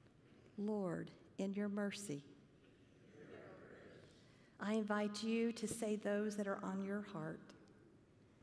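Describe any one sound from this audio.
A woman reads aloud into a microphone in a large echoing hall.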